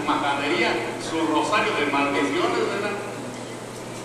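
A man speaks with animation through a microphone in an echoing room.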